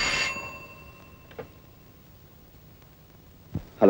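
A telephone handset is lifted with a click.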